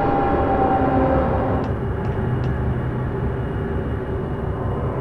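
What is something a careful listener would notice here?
A low electric hum drones steadily.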